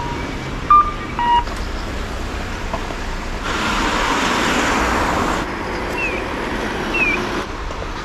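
Cars drive past on a street nearby.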